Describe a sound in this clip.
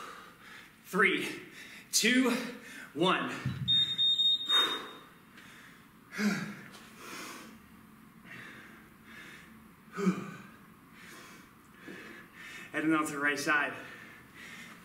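A man speaks briefly between breaths, out of breath.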